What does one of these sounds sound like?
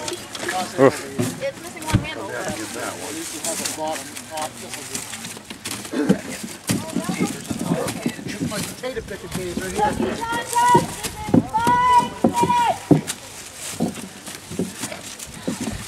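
Potatoes knock against each other as they are handled.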